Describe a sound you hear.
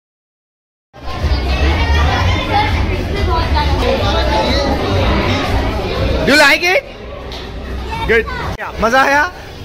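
Children chatter and talk loudly over each other nearby.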